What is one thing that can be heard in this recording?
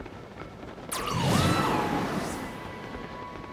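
Wind rushes loudly past a glider as it is lifted upward.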